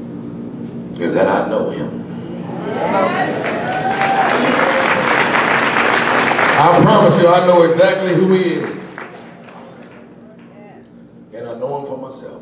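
A man speaks with animation into a microphone through loudspeakers in a large hall.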